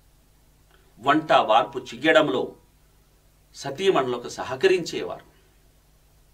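A man speaks calmly and clearly into a microphone, pausing between phrases.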